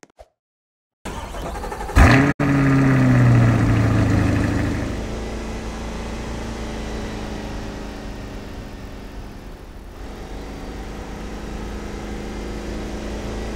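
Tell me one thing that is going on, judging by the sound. A car engine starts with a roar and then hums steadily as the car drives.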